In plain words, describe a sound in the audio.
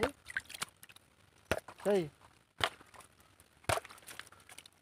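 A plastic jug scrapes and knocks against gravel.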